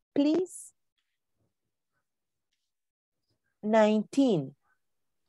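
A woman speaks in short phrases through an online call.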